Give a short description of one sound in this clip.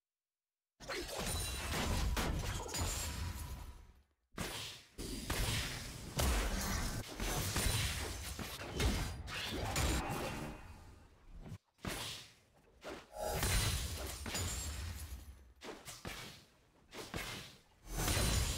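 Spell effects and weapon hits clash rapidly in a video game battle.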